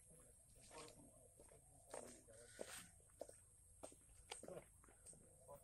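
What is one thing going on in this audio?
Several men talk quietly at a distance outdoors.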